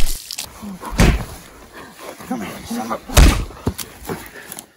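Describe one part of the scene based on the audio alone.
Bodies thud heavily in a close scuffle.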